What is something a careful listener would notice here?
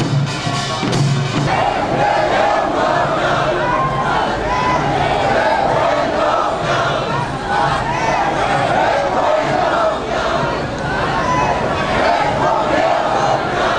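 Traffic rumbles along a busy street.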